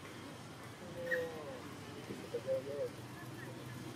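A baby monkey squeaks in short, high cries.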